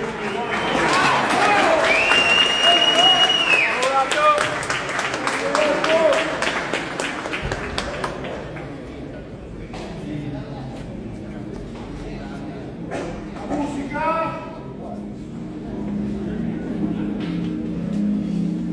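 A crowd of men and women chatters in a large echoing room.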